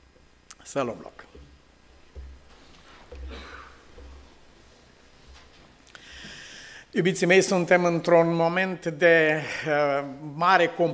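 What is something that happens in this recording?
An older man speaks into a microphone in a calm, warm voice, with pauses.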